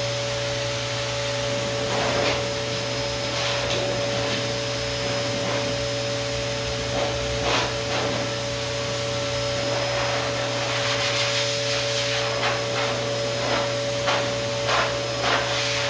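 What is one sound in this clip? A slicker brush rasps through a dog's long coat.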